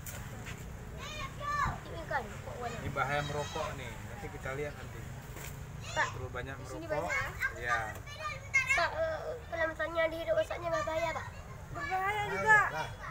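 Children chatter and call out excitedly.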